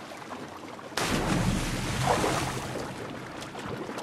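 Water bursts up in a loud splash.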